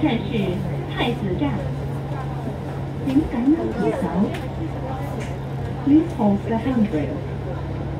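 People chatter in a crowd nearby.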